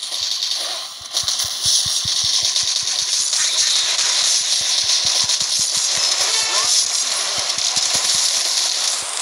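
Rapid bursts of cartoonish gunfire crackle in quick succession.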